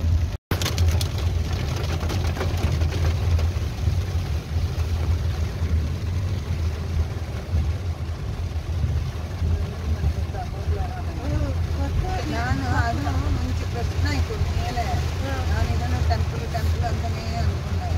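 Rain patters on a car windshield, heard from inside the car.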